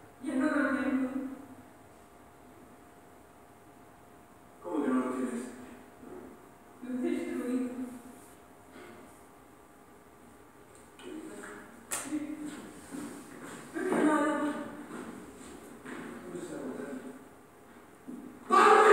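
A woman speaks calmly, heard through a loudspeaker in a room.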